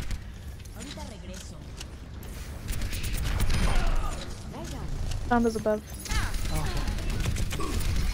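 An energy gun fires in rapid bursts.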